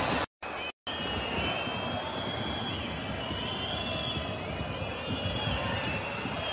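A large stadium crowd roars and chants.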